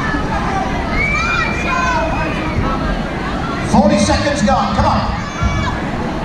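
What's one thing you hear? A crowd of spectators shouts and cheers in a large hall.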